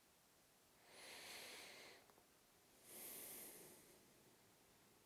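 A man sighs heavily, close by.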